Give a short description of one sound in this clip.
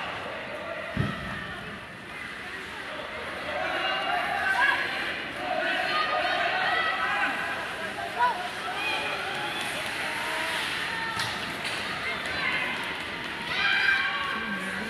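A puck knocks against sticks and boards.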